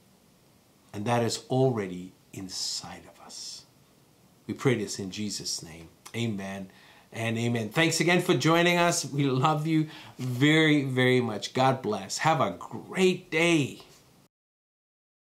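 A middle-aged man speaks calmly and earnestly, close to a microphone.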